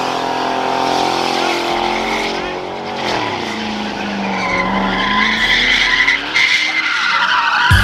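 A car engine revs hard and roars close by.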